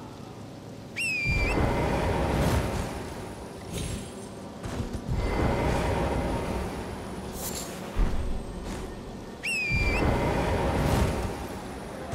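A magical whoosh bursts out as a horse leaps into the air.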